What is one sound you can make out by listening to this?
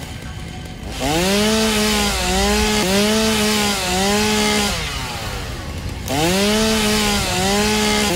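A power tool whirs up and runs with a high, wavering whine in bursts.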